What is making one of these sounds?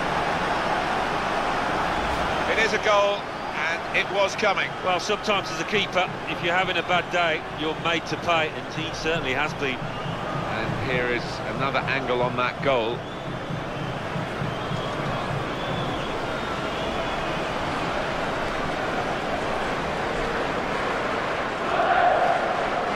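A stadium crowd roars and murmurs, swelling to a cheer near the end.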